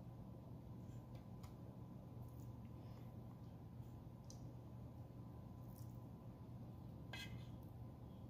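Pineapple slices are set down softly into syrup in a metal pan with faint wet pats.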